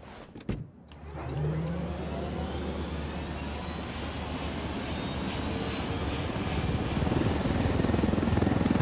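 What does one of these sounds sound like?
A helicopter engine whines up and its rotor beats loudly.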